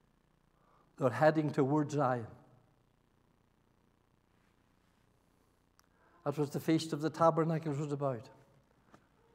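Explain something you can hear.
An elderly man speaks with animation through a microphone in an echoing hall.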